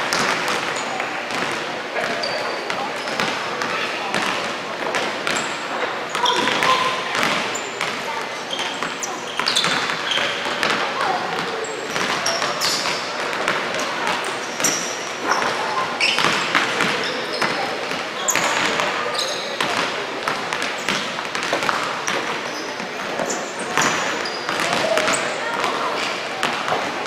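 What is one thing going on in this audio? Basketballs bounce on a wooden floor in a large echoing hall.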